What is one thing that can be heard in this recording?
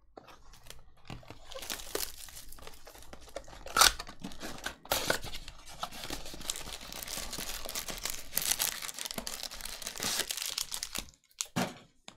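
Cardboard flaps scrape and tear open.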